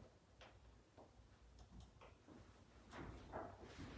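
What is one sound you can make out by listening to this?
Cloth rustles as a banner is handled.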